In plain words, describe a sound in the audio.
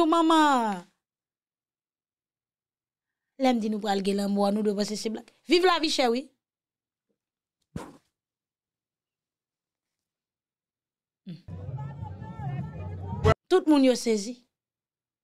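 A young woman speaks expressively and close up, in short bursts with pauses.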